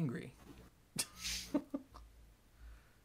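A man laughs briefly through a microphone.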